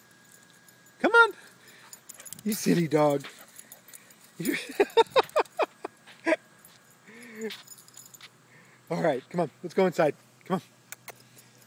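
A dog barks and yelps excitedly outdoors.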